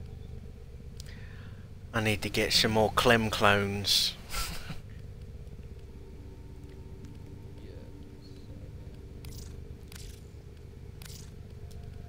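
Soft interface clicks tick as a menu scrolls.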